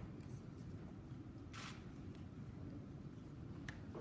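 Papers rustle as they are handled.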